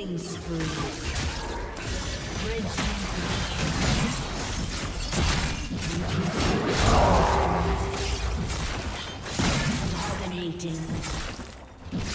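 Magic blasts and impacts crackle and boom in a fast video game battle.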